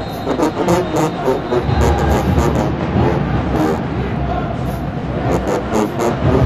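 A marching band plays loud brass music in a large echoing arena.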